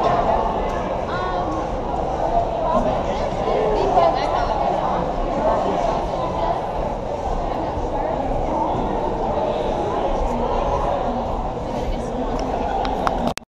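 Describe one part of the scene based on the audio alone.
A crowd of men and women chatter throughout a large echoing hall.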